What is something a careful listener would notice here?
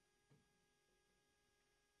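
A double bass is plucked softly.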